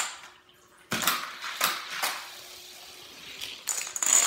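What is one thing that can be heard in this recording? A toy car rolls along a plastic track.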